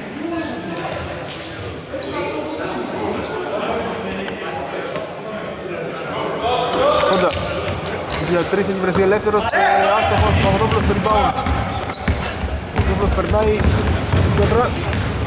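Men shout and call out to each other across a large echoing gym.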